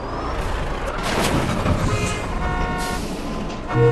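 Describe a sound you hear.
Metal scrapes and crashes loudly.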